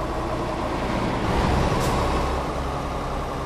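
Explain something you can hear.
A bus passes by with a brief whoosh.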